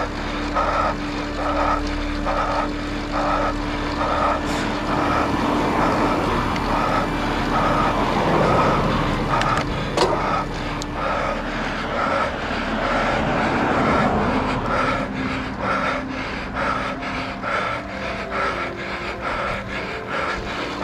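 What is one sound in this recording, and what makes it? Wind rushes past a cyclist descending on a road bike.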